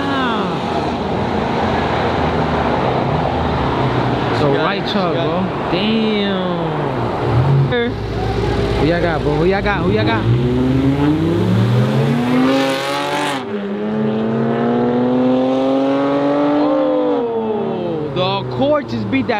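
A car engine revs loudly, rising and falling in pitch.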